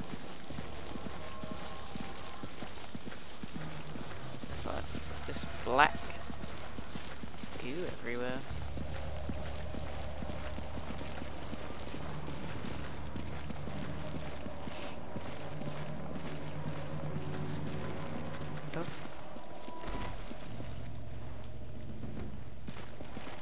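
A young woman speaks into a close microphone.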